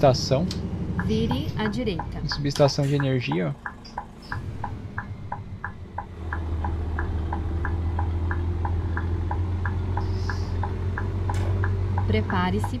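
A turn signal ticks at an even pace.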